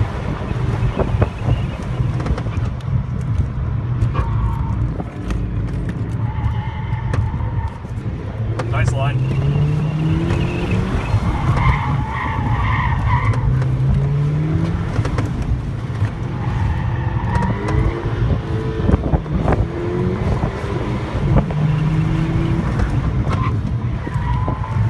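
A car engine revs hard, rising and dropping in pitch as the car speeds up and slows.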